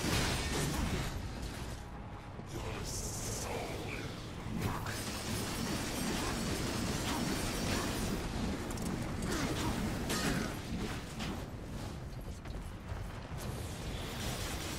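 Swords clash and magic blasts boom in a video game fight.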